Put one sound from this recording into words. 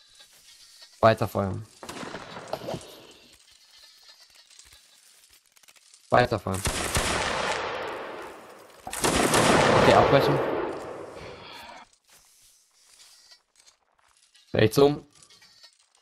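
Several musket shots crack close by.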